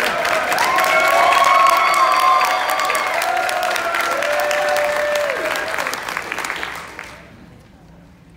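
An audience applauds loudly, then the applause dies away.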